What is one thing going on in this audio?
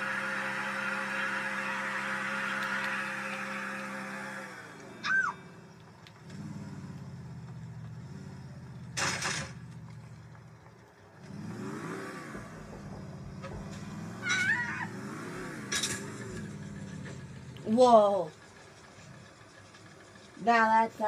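A video game car engine revs through a television speaker.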